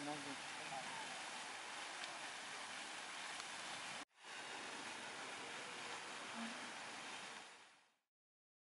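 A fountain splashes and hisses steadily.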